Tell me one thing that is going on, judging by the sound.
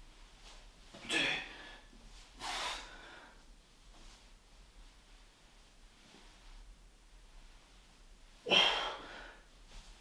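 A man breathes out hard with effort.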